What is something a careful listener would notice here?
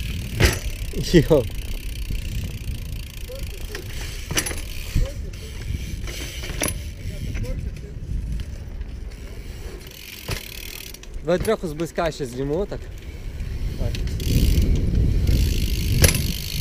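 Bicycle tyres roll and rumble on pavement.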